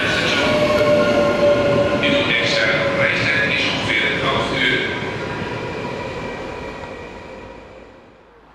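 Train wheels squeal with high, steady whines.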